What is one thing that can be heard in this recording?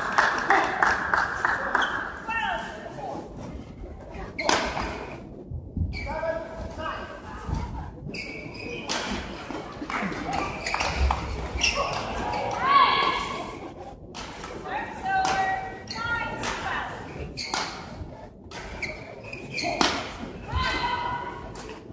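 Shoes squeak on an indoor court floor.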